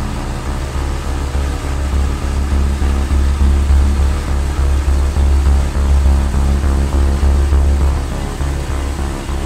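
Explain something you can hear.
A diesel engine chugs loudly and steadily close by.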